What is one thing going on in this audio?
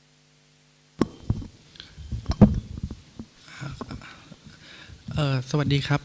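A man speaks calmly into a microphone, heard through a loudspeaker in a large hall.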